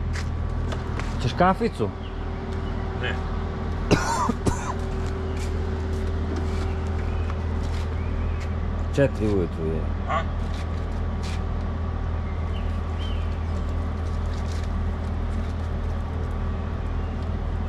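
A truck engine idles with a steady low rumble nearby.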